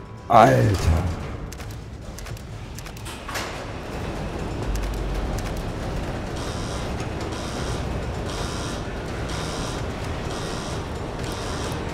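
Footsteps clang on metal grating.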